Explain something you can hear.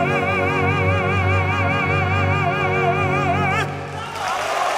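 A man sings loudly in an operatic voice with a wide vibrato.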